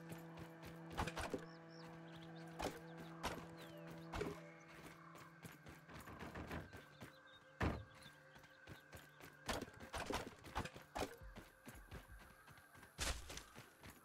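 An axe chops with sharp, repeated thuds.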